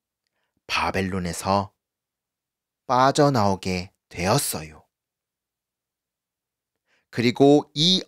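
A man speaks with animation, close to a microphone, in short bursts.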